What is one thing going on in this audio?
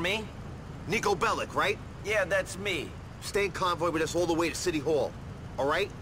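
A man asks a question calmly in a deep voice.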